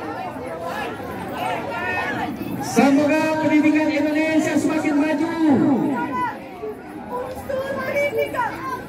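A crowd chatters and calls out nearby outdoors.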